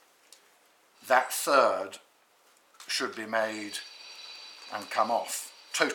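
A man speaks calmly and formally into a microphone.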